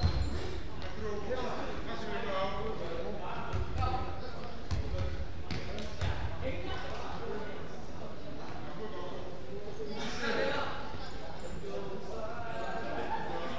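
Sneakers squeak and thud on a wooden court.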